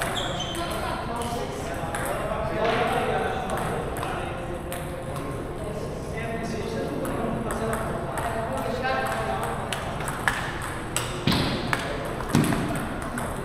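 Table tennis balls click against paddles and tables in a large echoing hall.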